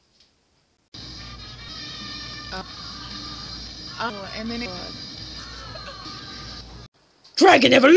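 A young woman speaks playfully, very close to the microphone.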